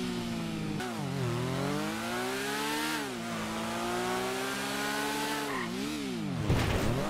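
A motorcycle engine drones steadily, its pitch rising and falling as it speeds along.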